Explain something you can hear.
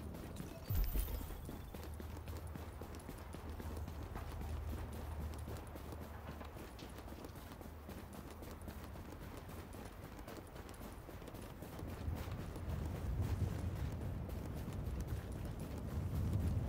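Strong wind howls steadily in a snowstorm.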